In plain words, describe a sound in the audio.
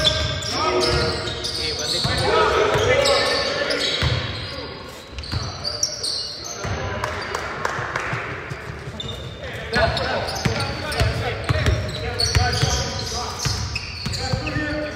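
A basketball bounces on a hard wooden court.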